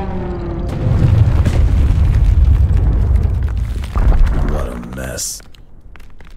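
A huge machine crashes through a wall with a deep, roaring rumble.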